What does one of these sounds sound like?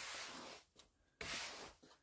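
A stiff broom sweeps across paving stones.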